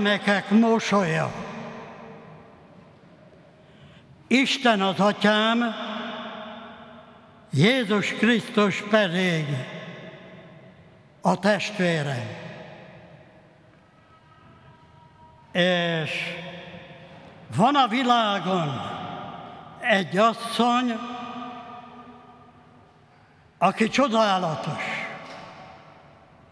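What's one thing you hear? An elderly man speaks slowly and solemnly into a microphone, his phrases echoing through a large reverberant hall.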